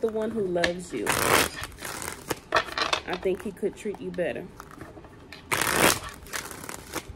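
Playing cards riffle and flutter as they are shuffled.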